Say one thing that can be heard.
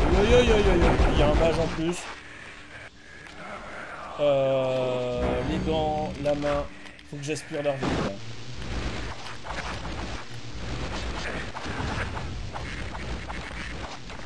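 Magic weapons in a video game fire with crackling blasts.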